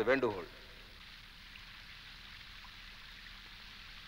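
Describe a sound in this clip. Water from a fountain splashes steadily.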